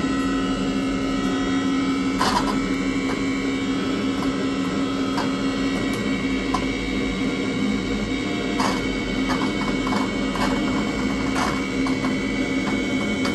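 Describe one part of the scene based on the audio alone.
Electronic music plays from a synthesizer with steady droning tones.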